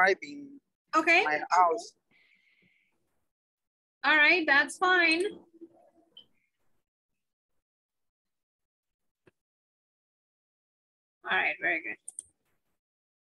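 A woman speaks calmly in short phrases over an online call.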